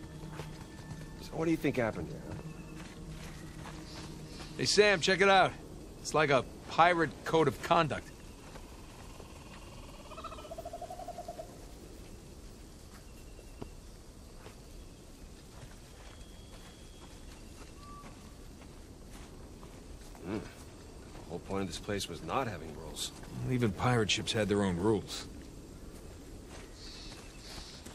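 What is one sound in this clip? Footsteps crunch on dirt and leaves.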